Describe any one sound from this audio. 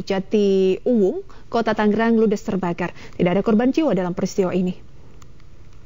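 A young woman reads out the news clearly into a microphone.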